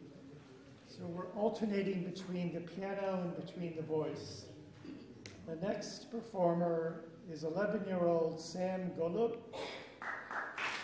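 An elderly man speaks calmly, reading out.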